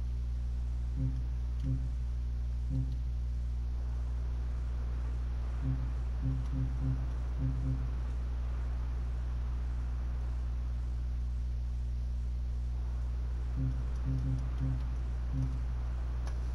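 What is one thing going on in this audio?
Soft, low menu blips sound one after another, now and then in quick runs.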